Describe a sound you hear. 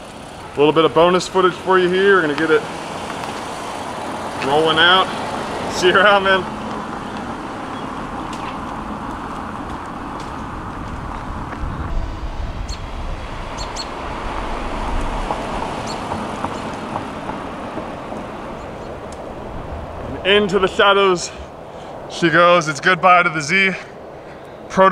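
A sports car's engine hums as the car drives slowly past.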